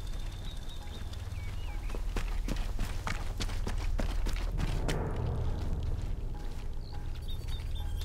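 Footsteps crunch quickly on dirt and grass.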